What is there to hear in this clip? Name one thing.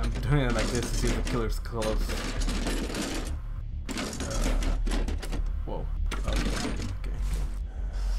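Hands rummage through a wooden chest with rattling and knocking.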